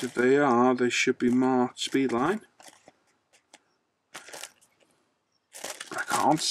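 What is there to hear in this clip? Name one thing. A plastic sleeve crinkles as it is handled.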